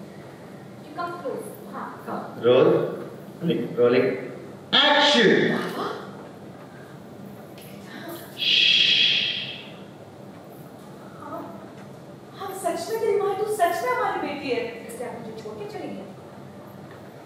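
Women speak with animation, close by.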